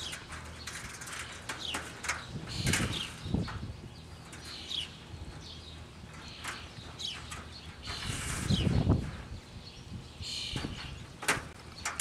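Fingers tap and rattle a wire mesh.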